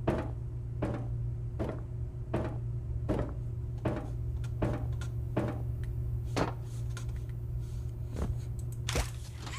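Footsteps thud steadily on a hard floor.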